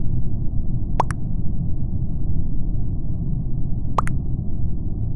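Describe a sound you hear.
A short double blip sounds as each new chat message arrives.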